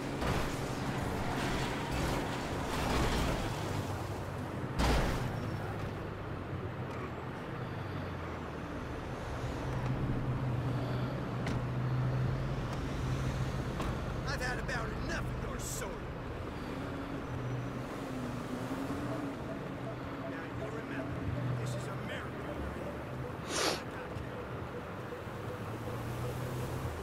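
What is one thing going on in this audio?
Car engines hum steadily as traffic drives by.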